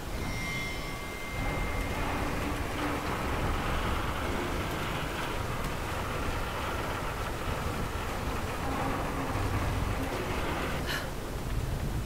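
A winch cranks and rattles.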